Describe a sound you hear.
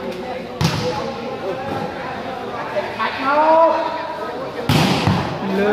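A ball is kicked with sharp thuds in a large echoing hall.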